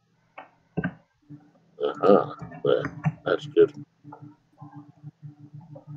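Stone blocks are set down with short, dull knocks.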